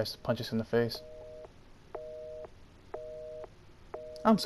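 A telephone gives a repeating electronic beep.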